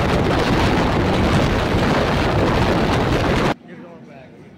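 Wind roars loudly past a fast-moving train.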